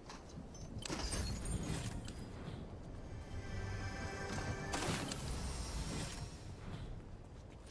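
A game chest opens with a shimmering chime.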